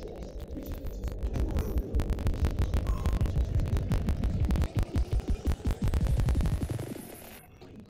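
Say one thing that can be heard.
A spaceship engine rumbles deeply and loudly, then dies down.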